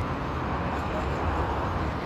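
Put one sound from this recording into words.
Cars drive past on a street.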